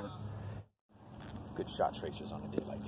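A driver strikes a golf ball with a sharp crack.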